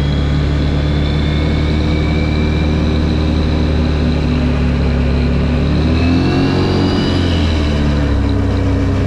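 A 1000cc V-twin quad bike engine drones while cruising.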